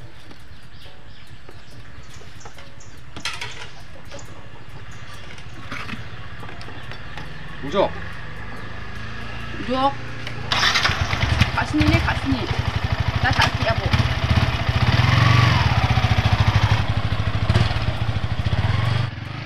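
A motorcycle engine idles and revs.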